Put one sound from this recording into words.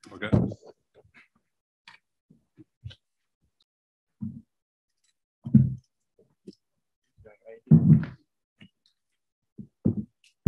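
Dull thumps and knocks sound close to a microphone.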